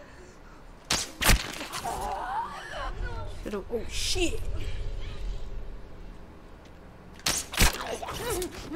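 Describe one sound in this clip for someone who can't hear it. A bowstring snaps as arrows are loosed.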